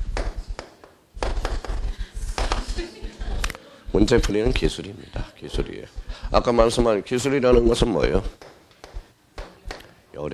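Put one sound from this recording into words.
A man lectures with animation through a microphone.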